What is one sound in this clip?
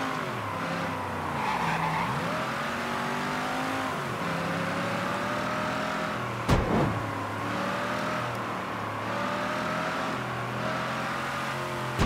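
A car engine revs and roars, rising and falling as gears shift.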